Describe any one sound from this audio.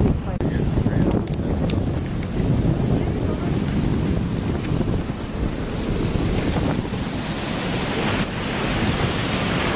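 Water roars steadily as it pours down into a spillway nearby.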